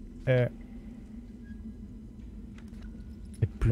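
A page of a book flips over.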